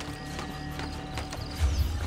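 Hands and feet knock against a wooden ladder while climbing.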